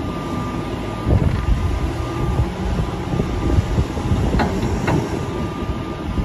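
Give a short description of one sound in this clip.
A loader's bucket scrapes and thuds into a heap of silage.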